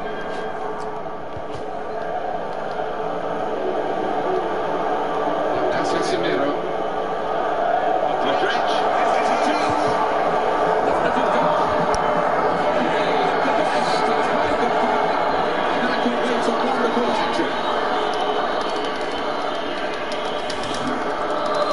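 A large stadium crowd roars steadily and swells louder.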